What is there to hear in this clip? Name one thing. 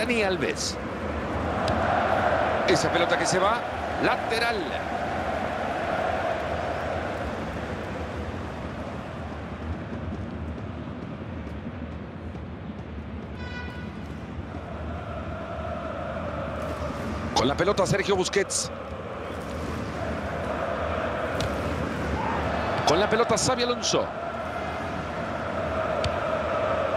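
A large stadium crowd roars steadily, swelling at times.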